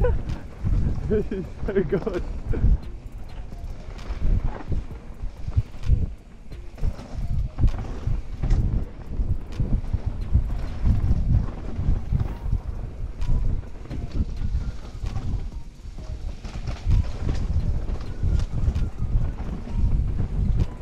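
Mountain bike tyres rumble close by over a dirt trail.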